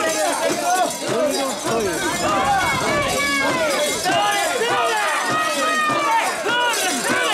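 A crowd of men chants loudly together close by, outdoors.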